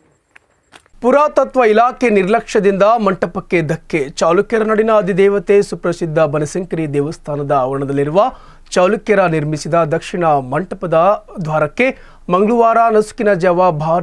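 A young man speaks steadily and clearly into a microphone, reading out.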